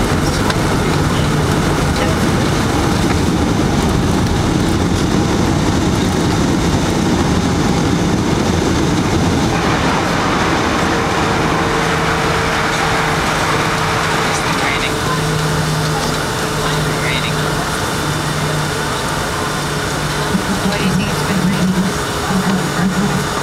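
An airliner's wheels rumble over the runway.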